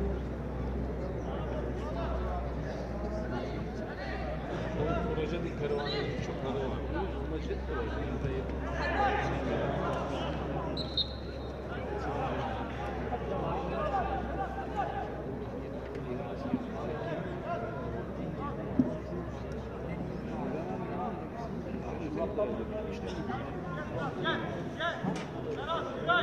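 Men shout to each other across an open playing field outdoors.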